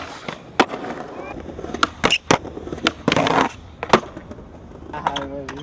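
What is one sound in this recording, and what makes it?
Skateboard wheels roll and rumble over rough pavement.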